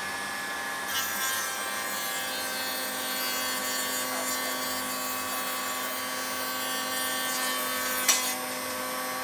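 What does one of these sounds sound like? A router whines as it cuts through a strip of wood.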